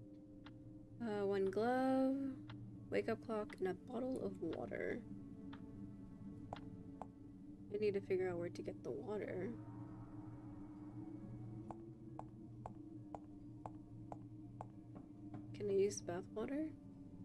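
A young woman talks into a microphone with animation, close by.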